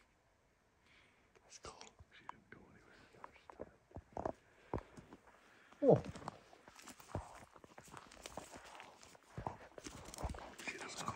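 Footsteps crunch through dry brush.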